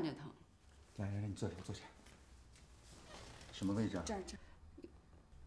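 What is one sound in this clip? A middle-aged man speaks calmly and with concern close by.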